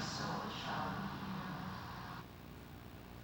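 A middle-aged man speaks slowly and calmly into a microphone in a large echoing room.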